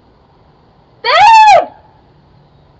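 A woman close by lets out a short, loud, high-pitched call that rises and then falls.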